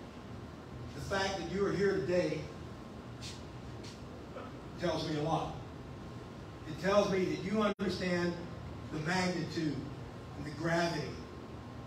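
A middle-aged man speaks into a microphone over a loudspeaker, in a room with some echo.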